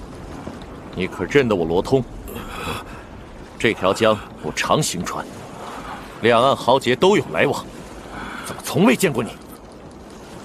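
A man speaks firmly, close up.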